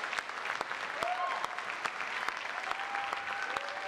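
An orchestra plays a few sustained notes.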